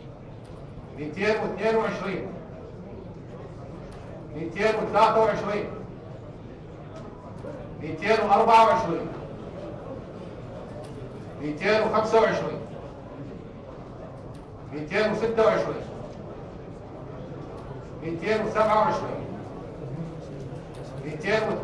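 A man calls out short announcements through a loudspeaker in an echoing hall, with pauses between them.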